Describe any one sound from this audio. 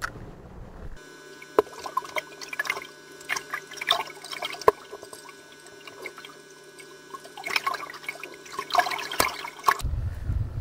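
Water bubbles and rushes underwater.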